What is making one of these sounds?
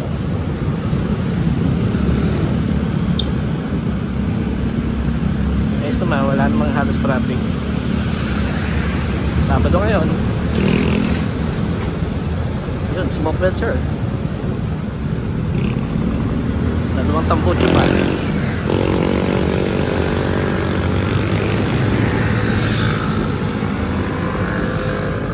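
A motorbike engine hums steadily while riding along a road.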